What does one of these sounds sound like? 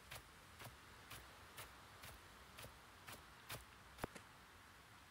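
Footsteps swish steadily through grass.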